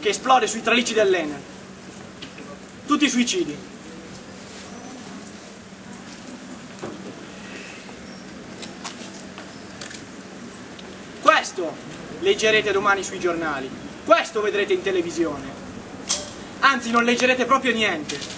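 A young man speaks with animation outdoors, with long pauses.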